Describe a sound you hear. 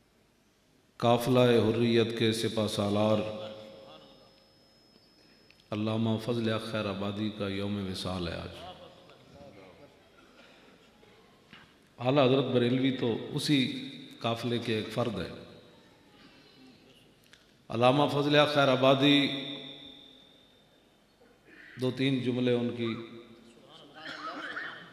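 An elderly man speaks with emphasis into a microphone in bursts, with pauses between them, echoing through a loudspeaker system.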